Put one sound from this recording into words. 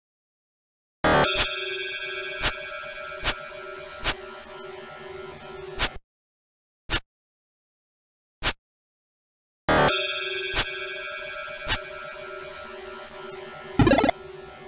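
Electronic game music plays with a steady tone.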